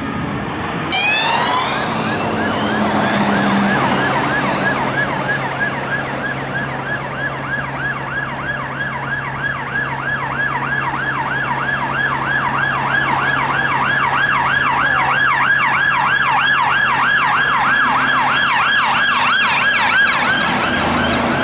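Police sirens wail in a fast rising and falling pattern and grow louder as they approach.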